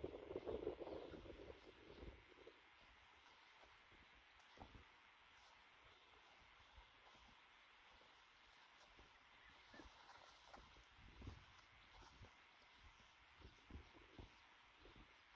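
Footsteps tread softly on dry grass.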